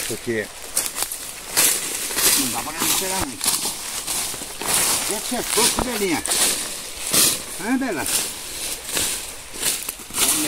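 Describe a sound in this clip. Dry leaves rustle and crunch underfoot.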